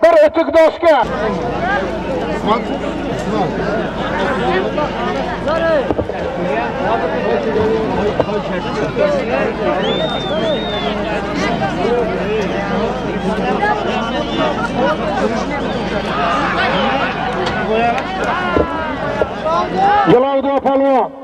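A crowd of men shouts and calls out loudly outdoors.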